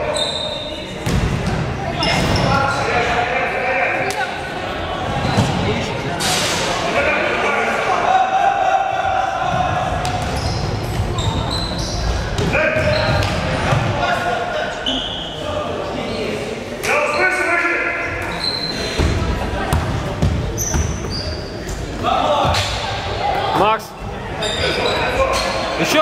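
Young spectators and players chatter and shout nearby.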